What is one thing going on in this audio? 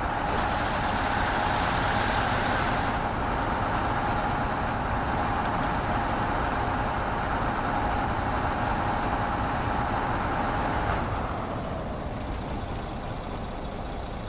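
A heavy truck engine rumbles steadily from inside the cab.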